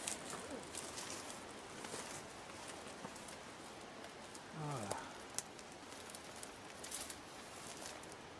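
Footsteps crunch and rustle through dry undergrowth.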